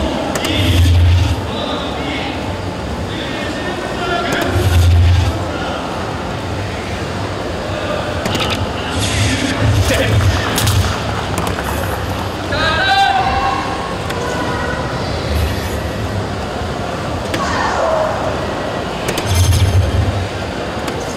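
Darts thud into a board one after another.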